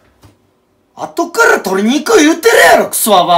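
A young man speaks loudly and with animation close to the microphone.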